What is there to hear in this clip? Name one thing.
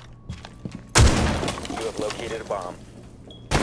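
A blast bursts loudly and debris clatters.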